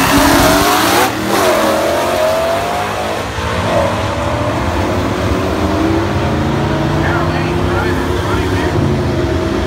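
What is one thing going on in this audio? Race car engines scream as the cars speed away and fade into the distance.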